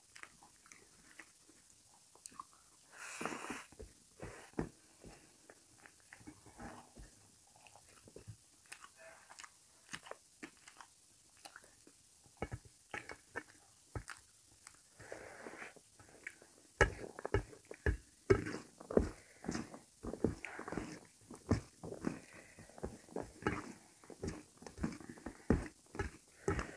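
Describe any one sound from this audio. A man chews food noisily with his mouth open.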